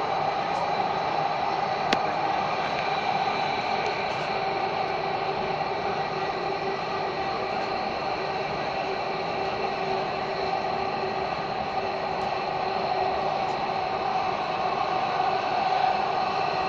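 A metro train hums and rumbles steadily as it runs along the track.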